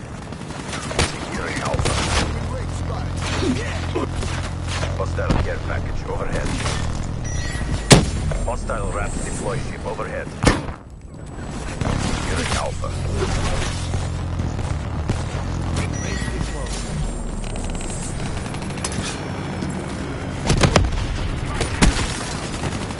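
Gunshots crack and bang in a video game.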